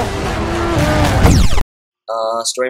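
A race car crashes with a loud bang.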